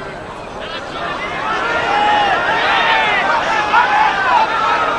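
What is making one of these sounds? A large crowd cheers loudly.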